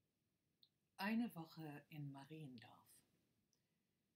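A middle-aged woman speaks briefly and calmly into a nearby microphone.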